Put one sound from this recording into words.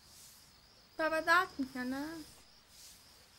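A girl asks a question softly, close by.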